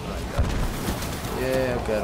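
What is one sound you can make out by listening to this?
Electric crackling zaps loudly.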